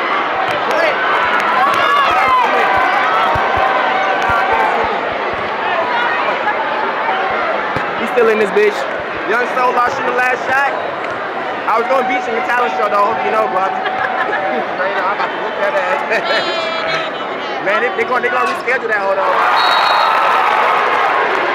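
A large crowd cheers and shouts in a big echoing arena.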